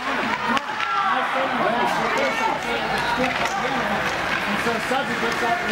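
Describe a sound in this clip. A crowd of spectators shouts and cheers in an echoing rink.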